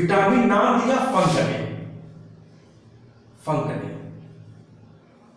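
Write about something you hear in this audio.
A man speaks loudly and slowly, as if teaching, in a room with some echo.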